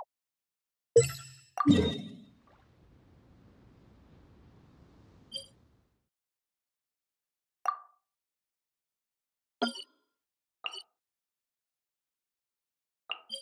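Short electronic chimes sound as menu buttons are tapped.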